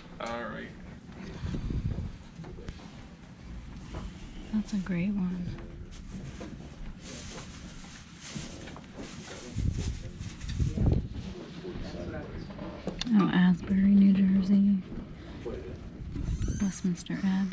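Stiff paper cards rustle and slide against each other as they are handled.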